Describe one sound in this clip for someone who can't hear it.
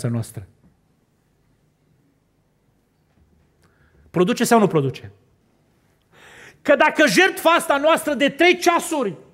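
A middle-aged man preaches with emotion into a microphone in a large hall.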